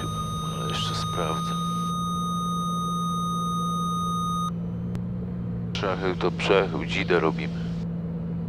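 A middle-aged man speaks with animation through a headset microphone.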